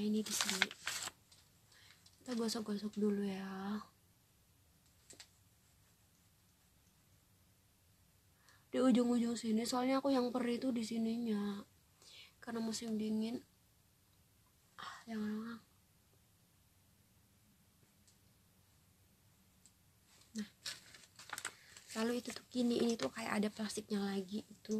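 A young woman talks calmly and close up, in short bursts with pauses.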